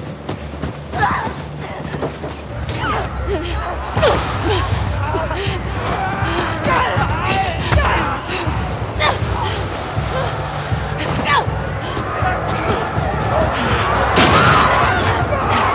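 Wind blows steadily outdoors in a snowstorm.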